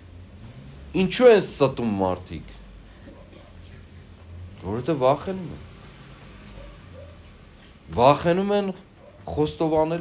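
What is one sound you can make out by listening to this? An elderly man speaks slowly and solemnly in short phrases, with pauses between them.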